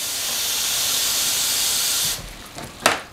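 Water runs from a tap into a container.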